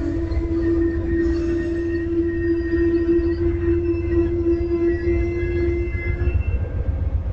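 A passenger train rolls slowly past and comes to a stop.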